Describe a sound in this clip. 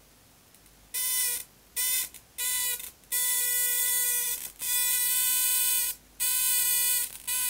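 An electric spark arcs with a loud, harsh buzz in repeated bursts.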